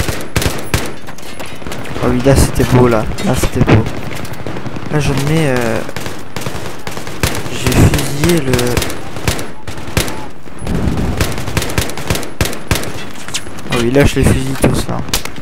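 Rifle gunshots fire in rapid bursts.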